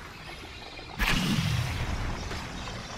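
A sudden whooshing rush sweeps past.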